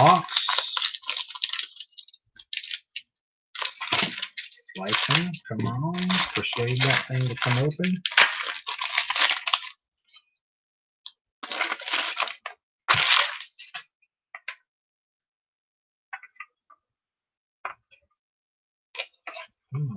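Card packs and wrappers rustle and crinkle as hands handle them.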